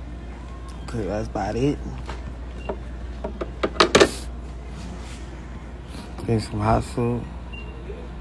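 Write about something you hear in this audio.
A young man speaks briefly and casually, close by.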